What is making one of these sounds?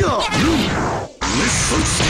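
An energy blast whooshes loudly.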